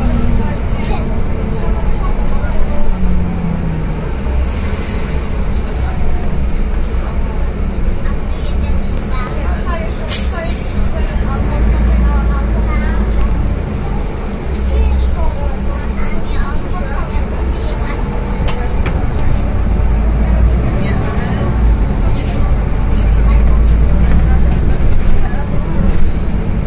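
The bus body rattles and creaks over the road.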